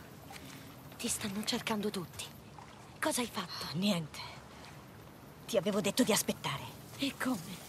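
A young boy speaks anxiously, close by.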